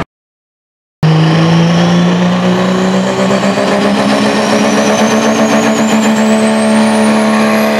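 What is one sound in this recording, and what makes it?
A truck engine roars loudly under heavy load.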